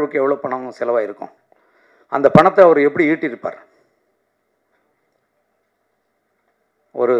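A middle-aged man speaks with animation into a microphone, heard through a loudspeaker.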